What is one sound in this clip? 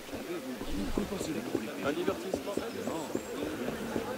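Footsteps run quickly over cobblestones.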